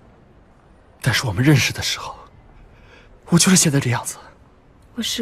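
A young man speaks earnestly, close by.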